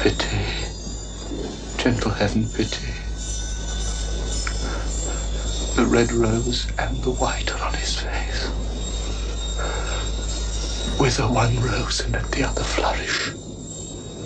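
A man sings with feeling, close to a microphone.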